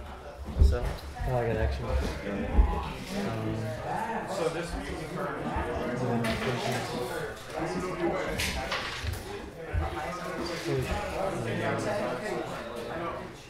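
Small plastic pieces tap and slide on a table.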